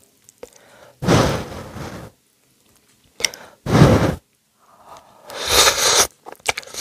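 Noodles are slurped loudly close to a microphone.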